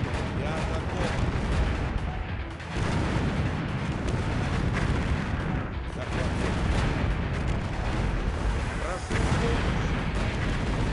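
Game units fire weapons and explosions boom in a battle.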